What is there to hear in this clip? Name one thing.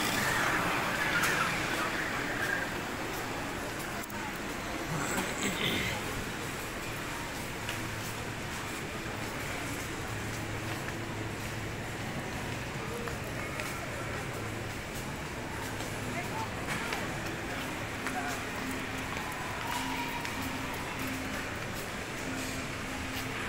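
Shoppers murmur indistinctly in a large indoor hall.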